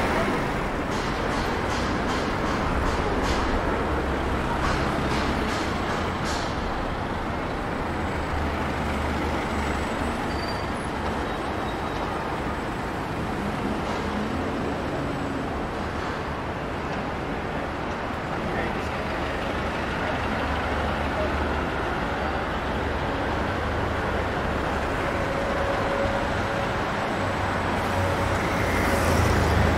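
Busy city traffic rumbles steadily outdoors.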